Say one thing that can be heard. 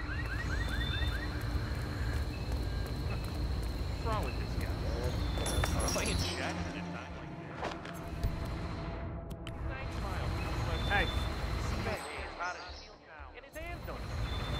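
Footsteps scuff softly on hard ground.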